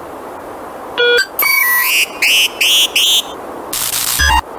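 An electronic device beeps in a quick run of short tones.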